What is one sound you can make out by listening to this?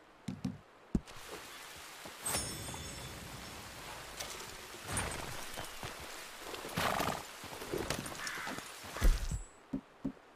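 Wind blows in gusts outdoors.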